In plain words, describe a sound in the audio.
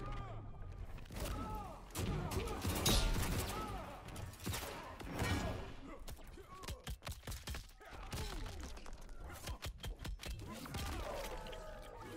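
Bones crunch and flesh squelches.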